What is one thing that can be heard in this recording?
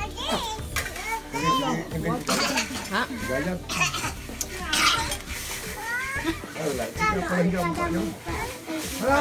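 A metal spatula scrapes inside a wok.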